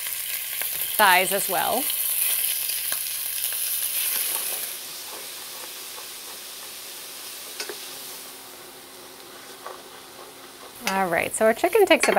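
A spatula scrapes and stirs in a metal pan.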